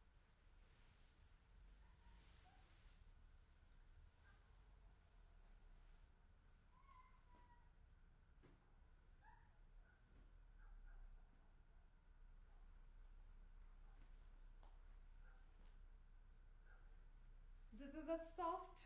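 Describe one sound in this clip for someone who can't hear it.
Silk fabric rustles as it is draped and unfolded.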